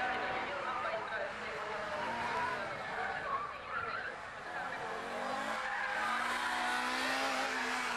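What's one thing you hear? Tyres squeal on tarmac as a car slides.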